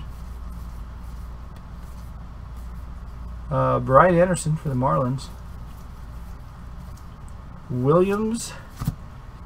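Trading cards rustle and slide against each other as they are shuffled by hand.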